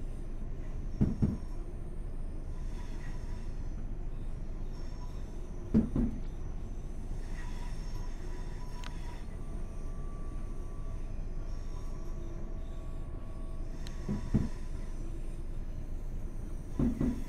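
Train wheels clunk over rail joints now and then.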